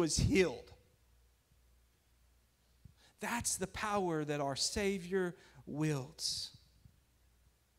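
A man speaks calmly and earnestly into a microphone.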